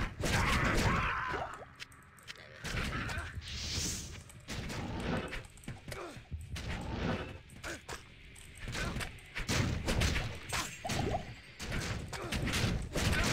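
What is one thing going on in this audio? Weapons clash and hit in a fight.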